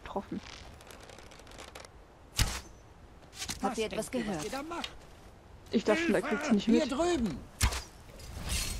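A bowstring twangs as arrows are loosed.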